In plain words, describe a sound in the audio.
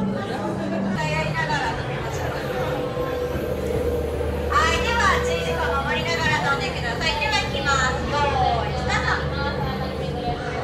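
Children and adults chatter and call out nearby.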